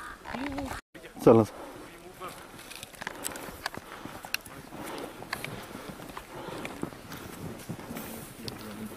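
Footsteps crunch through deep snow close by.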